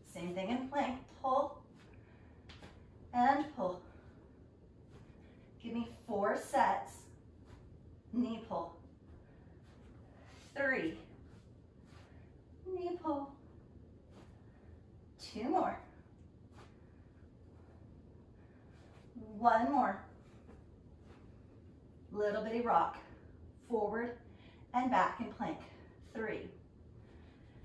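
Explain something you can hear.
A woman speaks in short bursts, a little breathless, close by.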